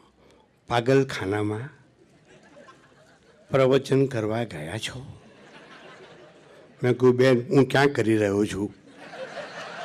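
An elderly man speaks slowly into a microphone, in short phrases.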